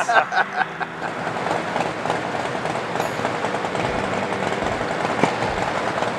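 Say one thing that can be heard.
A motorcycle engine idles with a rapid, steady throb.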